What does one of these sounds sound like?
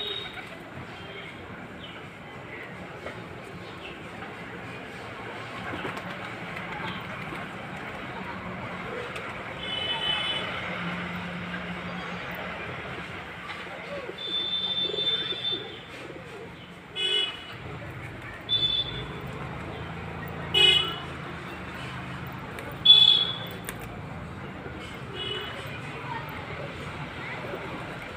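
Pigeons coo softly.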